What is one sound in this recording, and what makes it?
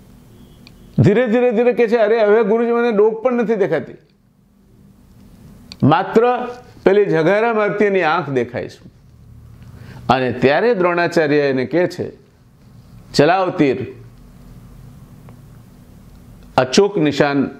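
An elderly man speaks calmly and close by, with pauses between phrases.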